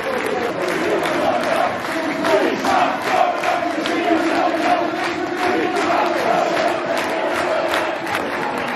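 A crowd claps hands rhythmically.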